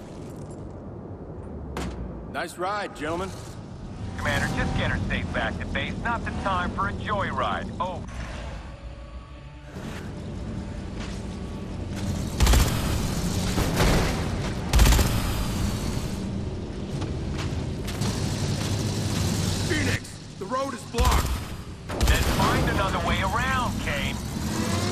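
A heavy armoured vehicle's engine rumbles low and steadily as it drives.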